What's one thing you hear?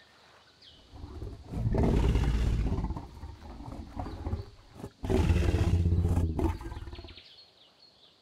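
A large creature roars loudly, twice.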